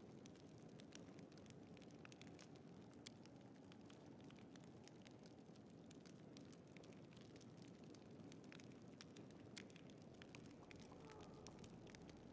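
Torches crackle softly.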